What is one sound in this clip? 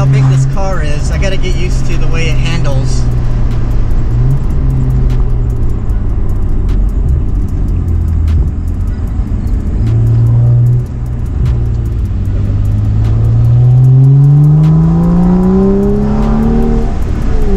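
A car engine hums steadily and then revs up as the car speeds up.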